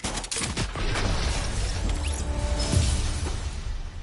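A pickaxe strikes a wall with loud crunching hits.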